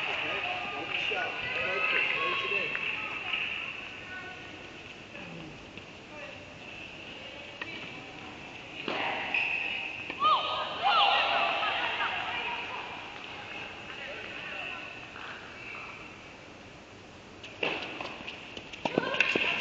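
Sneakers squeak on the court surface.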